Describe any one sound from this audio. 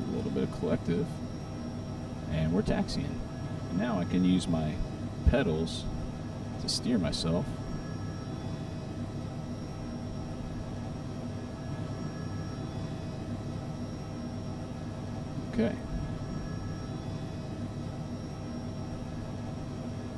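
A helicopter engine hums steadily.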